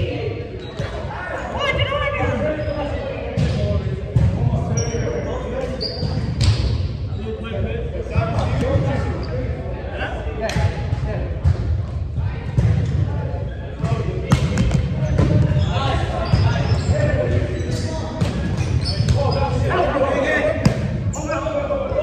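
Young men call out and talk across a large echoing gym.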